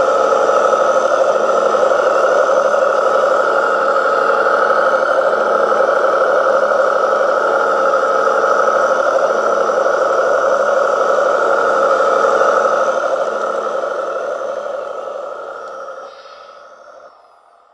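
A small electric motor whines steadily as a model tractor drives along, then fades away.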